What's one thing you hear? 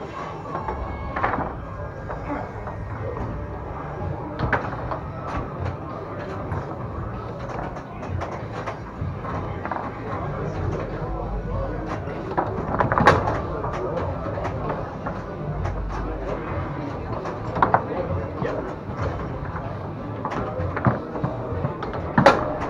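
Foosball rods rattle and slide as players spin them.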